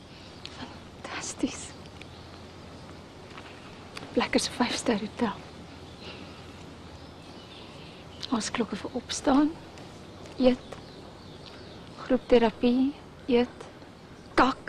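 A second young woman answers softly and close by.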